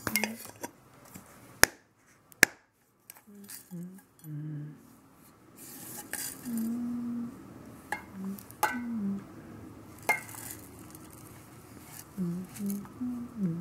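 A metal tin clicks and taps as hands turn it over.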